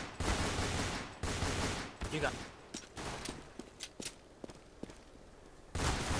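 Pistol shots crack loudly in quick bursts.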